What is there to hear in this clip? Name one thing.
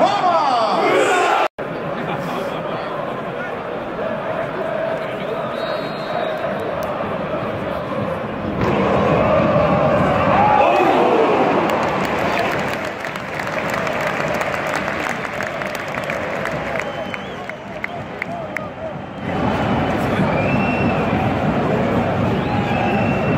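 A large stadium crowd roars and chants loudly all around.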